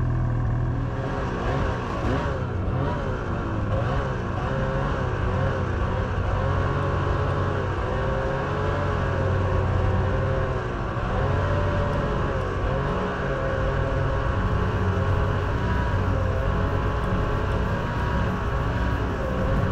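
A snowmobile engine roars and revs up and down while riding through snow.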